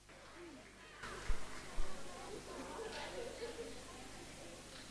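Young girls chatter and squeal excitedly.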